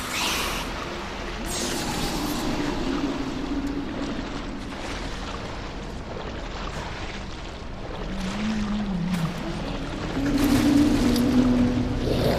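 Water sloshes around wading legs.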